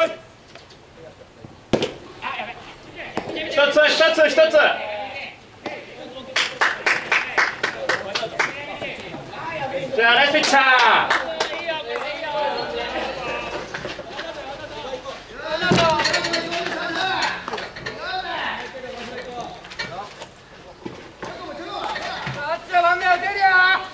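Young men shout and chant loudly outdoors.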